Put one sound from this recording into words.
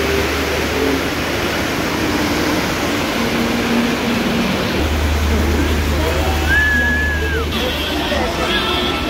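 Heavy rain pours outdoors.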